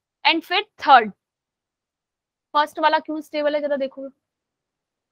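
A young woman speaks calmly into a microphone, heard through an online call.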